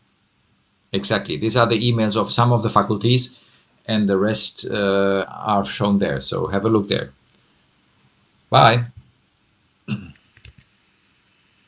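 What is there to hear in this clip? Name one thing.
A man speaks calmly through an online call, pausing now and then.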